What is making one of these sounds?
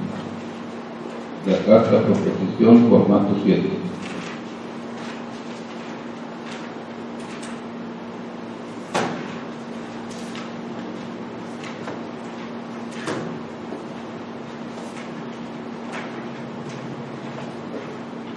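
Papers rustle and pages turn.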